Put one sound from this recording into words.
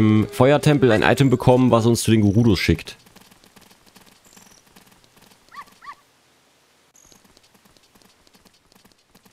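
Footsteps patter quickly on stone paving.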